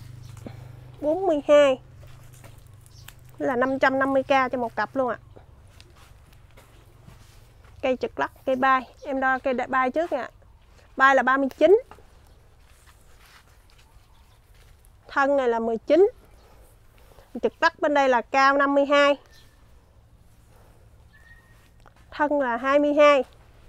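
A woman talks calmly close by, in short bursts.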